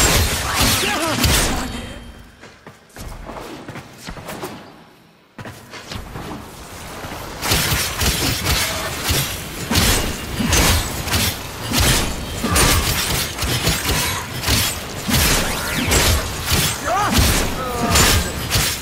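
Game weapons fire and clash in rapid bursts.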